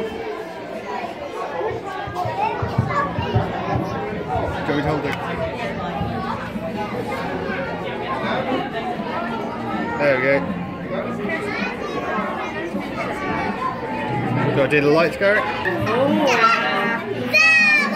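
A group of people sing together close by.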